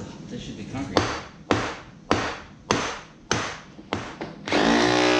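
A hammer strikes metal in sharp, ringing blows.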